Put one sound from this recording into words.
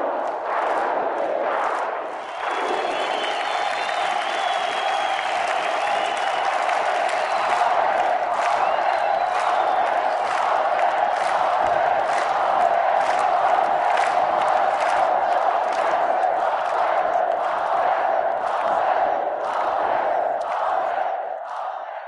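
A crowd claps rhythmically.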